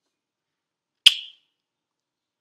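A woman blows a loud kiss.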